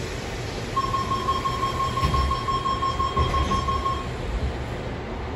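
Sliding train doors close.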